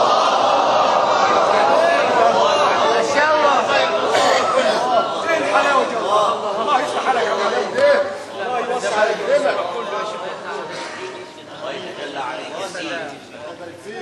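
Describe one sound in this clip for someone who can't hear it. A young man chants melodically into a microphone, heard through a loudspeaker in a reverberant hall.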